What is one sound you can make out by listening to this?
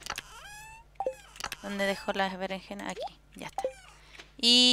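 A game menu opens and closes with short soft pops.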